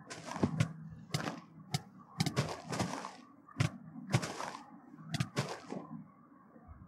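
Sword blows land with quick, sharp hits.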